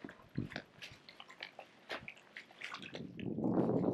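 A dog laps water from a pool.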